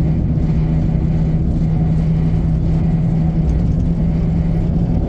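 A train engine drones steadily at a low pitch.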